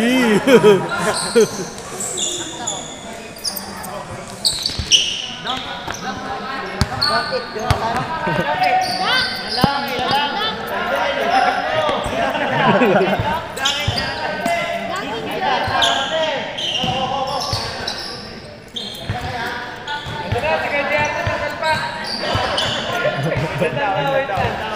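Young men talk and call out to each other in a large echoing gym.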